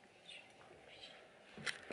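A young woman whispers close by.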